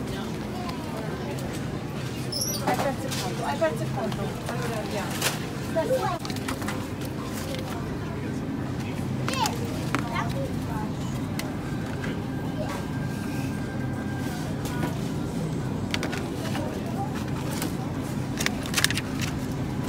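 A plastic food package crinkles in a hand.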